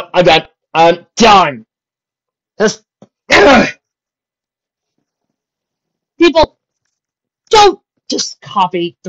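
A young woman speaks forcefully in short bursts.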